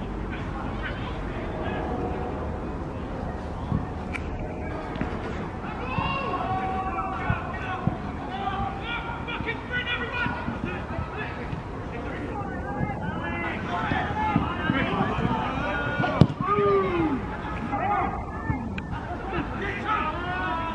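Men shout to one another across an open outdoor pitch.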